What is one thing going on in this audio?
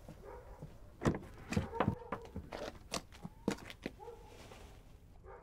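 Plastic bags rustle as a man handles them.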